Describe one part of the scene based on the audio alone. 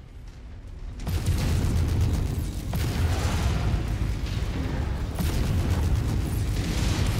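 Laser weapons fire in long, crackling bursts.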